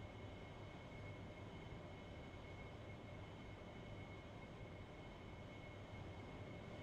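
A jet engine roars with a high whine, heard from inside the cockpit in flight.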